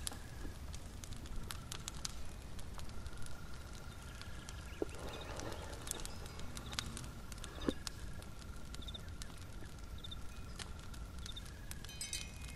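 Candle flames crackle softly.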